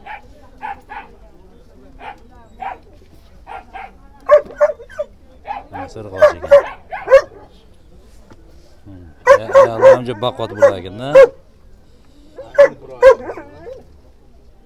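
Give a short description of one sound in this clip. Puppies whine and yelp in short, high cries close by.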